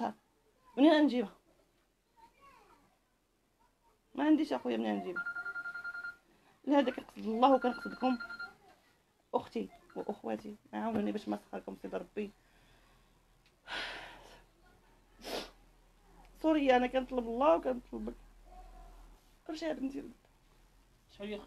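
A middle-aged woman speaks emotionally and tearfully into a close microphone, her voice breaking.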